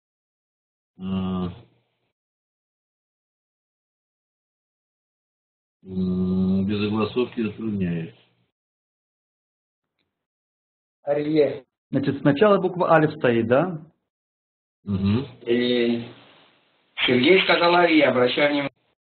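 An older man speaks calmly over an online call, in short phrases with pauses.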